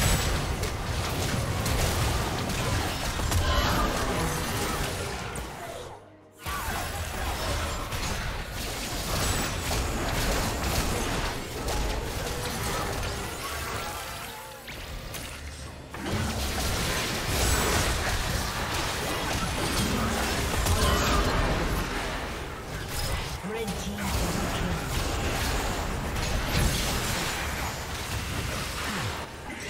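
Magic blasts and weapon hits clash in a fast battle.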